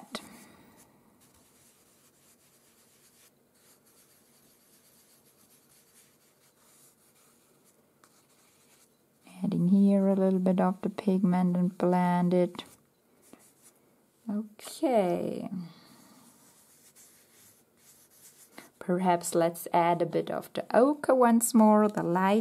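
A pencil scratches softly on paper in short strokes.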